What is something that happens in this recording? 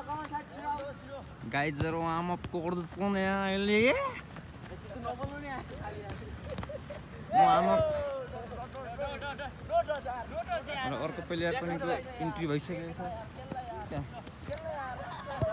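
Young boys shout and call to each other outdoors.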